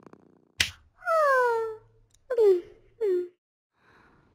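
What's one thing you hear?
A cartoon cat yawns in a high, squeaky voice.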